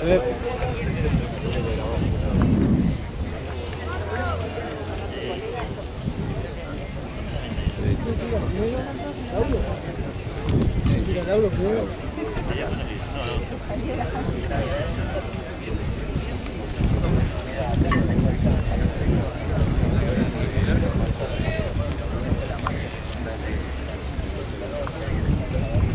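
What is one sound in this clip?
Several men talk with one another nearby outdoors.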